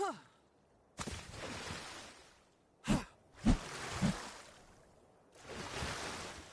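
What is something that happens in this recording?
Water splashes and gurgles as a swimmer moves through it.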